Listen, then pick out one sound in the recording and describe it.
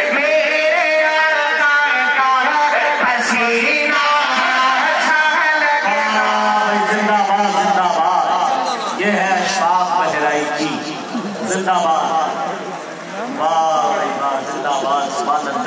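A man sings loudly through loudspeakers in a large open space.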